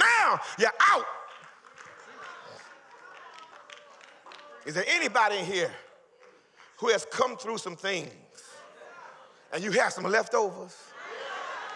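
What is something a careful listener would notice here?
A man preaches with animation through a microphone in an echoing hall, in short loud bursts.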